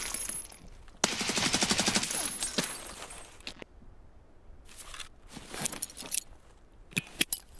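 A rifle shot booms.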